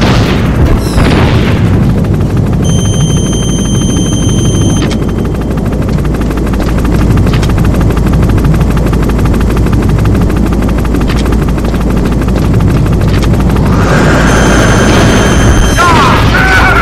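A helicopter's rotor thumps steadily and loudly.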